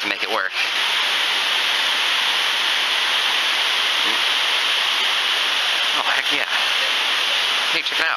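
Water rushes steadily over rocks nearby.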